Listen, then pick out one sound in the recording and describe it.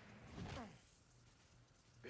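Electricity crackles and sparks.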